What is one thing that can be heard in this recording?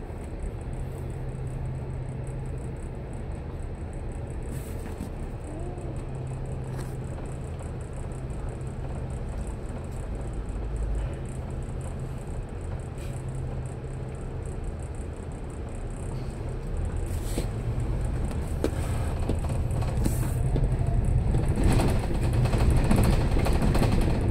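An engine hums and rumbles steadily, close by.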